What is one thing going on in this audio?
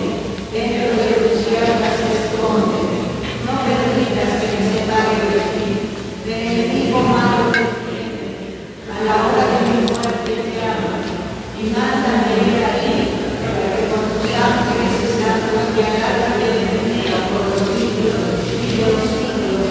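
A man speaks or chants steadily through a microphone in a large echoing room.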